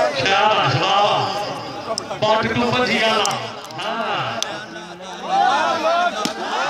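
A man commentates excitedly over a loudspeaker, outdoors.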